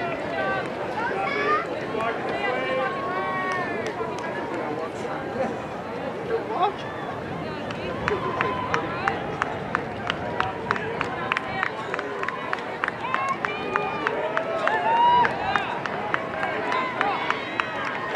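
A crowd of spectators cheers and shouts in the distance outdoors.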